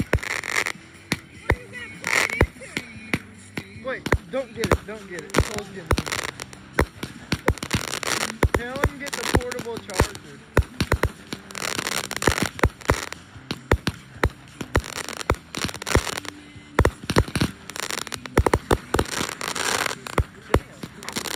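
Firework sparks crackle and fizz.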